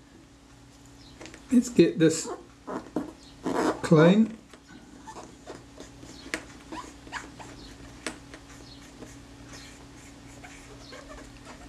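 Small metal parts click and tick softly as fingers handle them.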